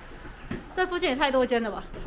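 Footsteps climb wooden stairs.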